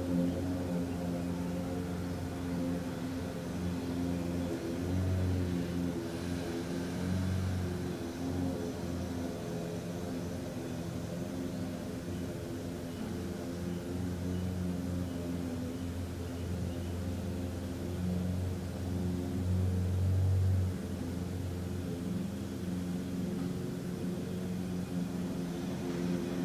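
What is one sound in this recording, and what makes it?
A man hums a low, steady chant close by.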